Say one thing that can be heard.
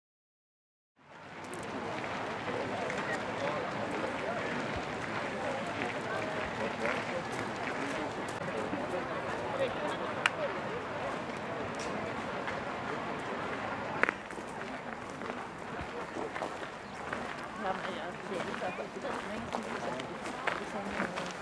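Footsteps crunch on gravel close by.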